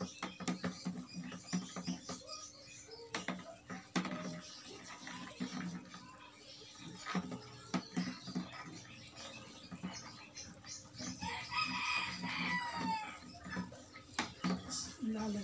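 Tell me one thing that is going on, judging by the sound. A pole thumps and sloshes rhythmically in a bucket of liquid.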